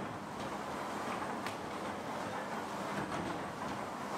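Clay blocks thud softly as a man stacks them.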